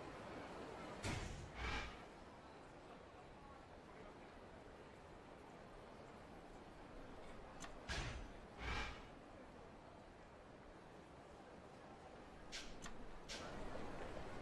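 Menu selection sounds chime sharply several times.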